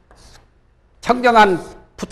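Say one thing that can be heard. A man speaks through a microphone in a slow, drawn-out voice.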